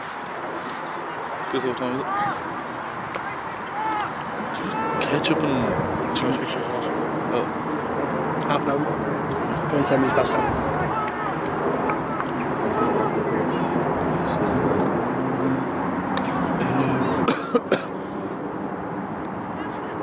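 A nearby man talks and shouts to the players.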